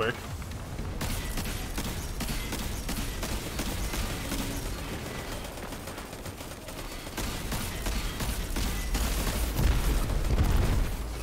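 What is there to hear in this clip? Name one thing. Video game gunfire and blasts rattle.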